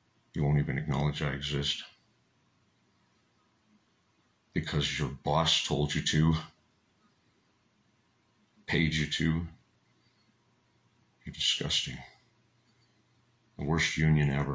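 A middle-aged man speaks calmly into a close microphone, in short phrases with pauses.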